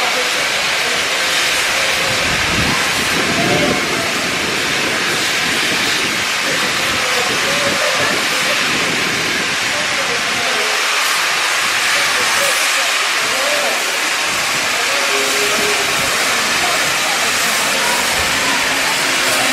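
A steam locomotive hisses loudly, venting steam.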